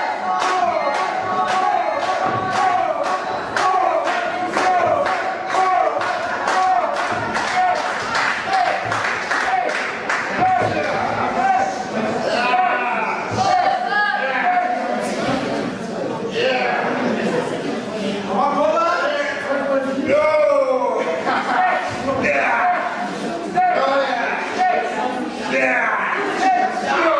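A crowd of men and women chants and shouts loudly.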